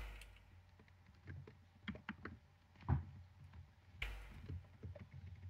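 Soft clicks sound as a game menu is opened and browsed.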